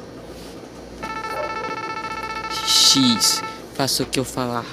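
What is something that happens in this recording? Rapid electronic blips beep as a message types out.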